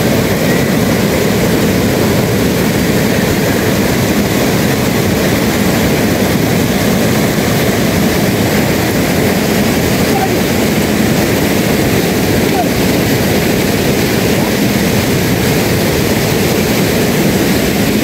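A swollen river rushes loudly nearby.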